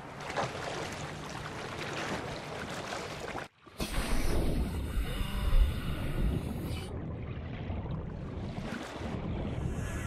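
Water rushes and bubbles around a swimmer underwater.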